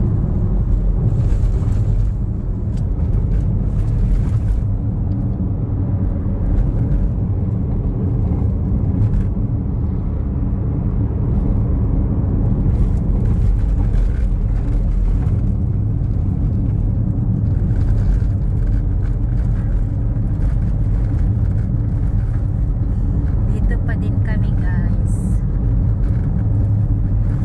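Tyres roll on the road with a low steady rumble.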